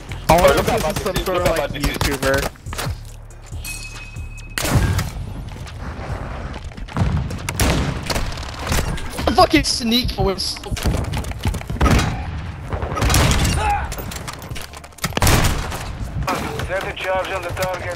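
Rapid gunshots crack in short bursts.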